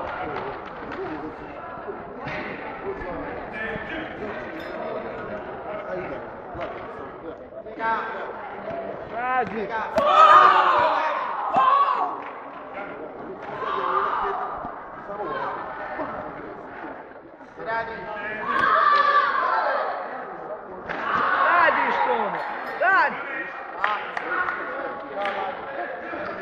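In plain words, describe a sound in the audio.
People talk in an echoing hall.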